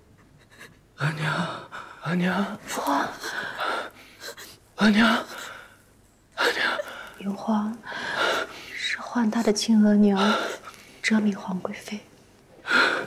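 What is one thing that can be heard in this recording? A woman speaks tearfully with emotion.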